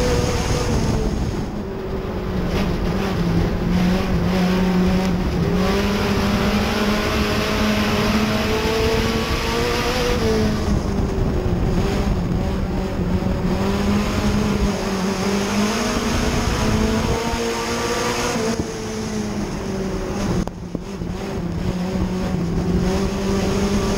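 Tyres skid and spray on loose dirt.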